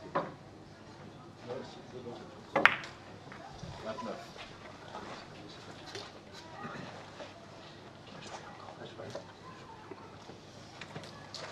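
Billiard balls roll and bump against the table cushions.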